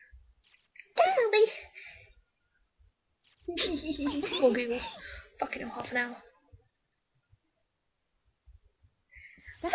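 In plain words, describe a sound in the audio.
A young woman talks and laughs with animation into a microphone, close by.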